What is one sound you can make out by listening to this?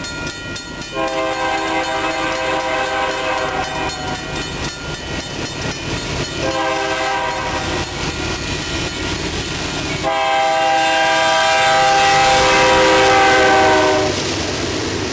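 A diesel locomotive's air horn sounds in long blasts.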